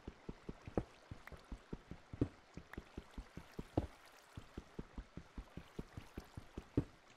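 A pickaxe taps rapidly against stone blocks.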